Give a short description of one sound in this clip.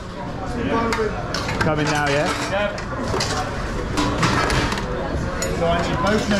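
Metal utensils clink against metal trays.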